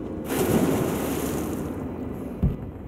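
Water churns and foams.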